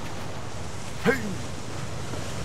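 A small splash sounds as a figure climbs into a boat.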